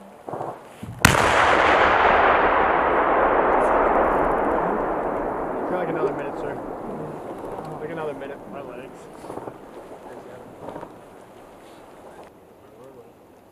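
A huge explosion booms and rumbles, echoing across open ground.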